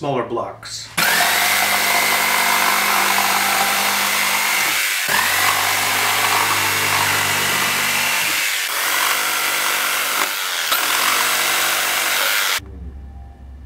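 A jigsaw cuts through a block of softwood.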